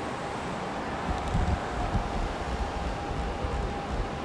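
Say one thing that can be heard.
A car drives past on a street.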